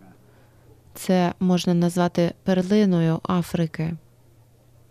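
A man speaks loudly and close into a microphone.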